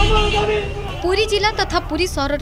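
A group of men chant slogans loudly outdoors.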